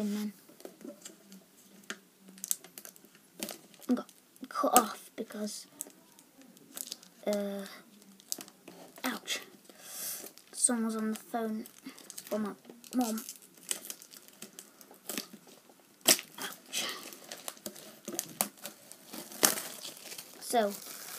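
Plastic wrapping crinkles and rustles in someone's hands.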